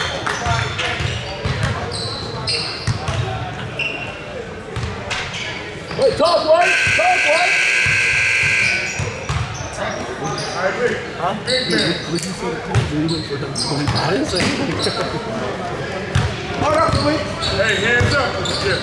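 Sneakers squeak on a hard court in a large echoing gym.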